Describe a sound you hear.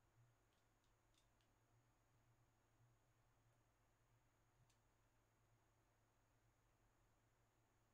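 Footsteps clank faintly on a metal ladder.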